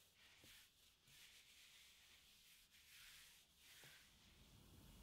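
Hands rub softly across fabric.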